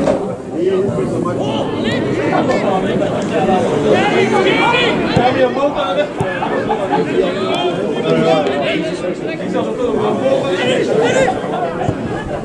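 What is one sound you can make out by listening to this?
Several men talk and shout nearby, outdoors.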